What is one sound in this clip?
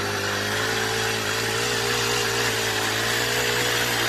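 A small engine on a wheeled grass trimmer hums steadily.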